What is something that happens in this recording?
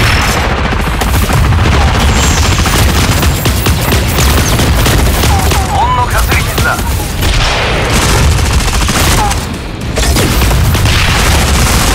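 Gunfire and energy blasts rattle rapidly.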